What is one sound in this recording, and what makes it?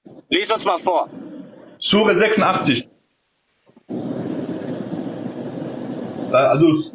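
A man speaks with animation through a phone microphone.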